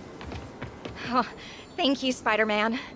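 An elderly woman speaks warmly and gratefully.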